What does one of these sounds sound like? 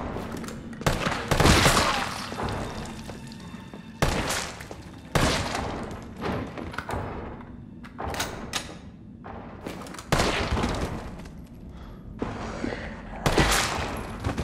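Gunshots fire loudly, one at a time, and echo indoors.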